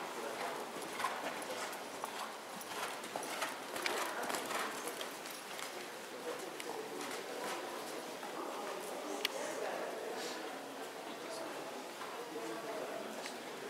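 A horse's hooves thud softly on sand in a large echoing hall.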